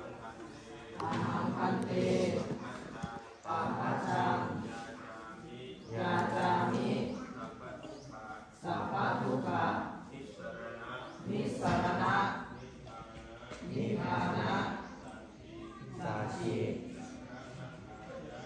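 A group of young men chant together in unison, in short repeated phrases.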